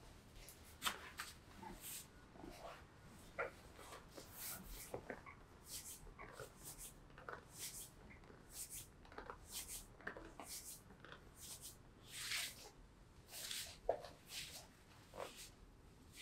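Hands rub and pat against clothing with soft rustling and brushing sounds.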